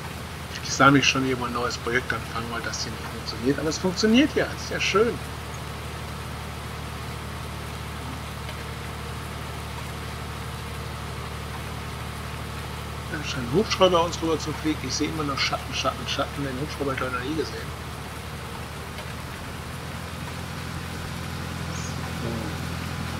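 A tractor engine hums steadily as it drives along a road.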